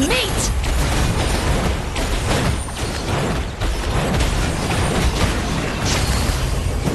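Crackling magic blasts and booming explosions ring out in quick succession.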